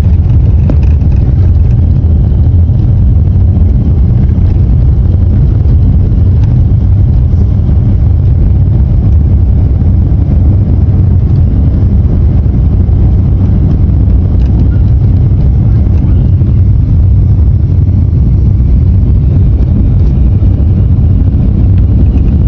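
Wind buffets loudly at an open car window.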